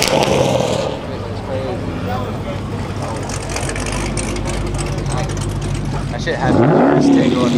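A second car's engine rumbles as it pulls past.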